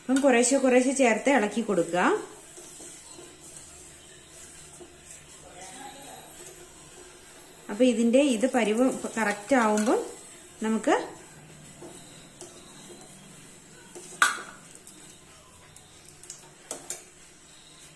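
A metal spoon stirs and clinks against a pot.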